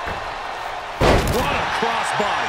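A heavy body slams down hard onto a wrestling mat with a loud thud.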